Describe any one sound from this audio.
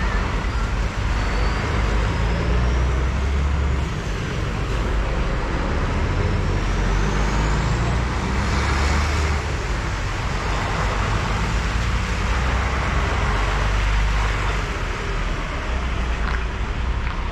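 A heavy truck drives slowly past with a deep engine rumble.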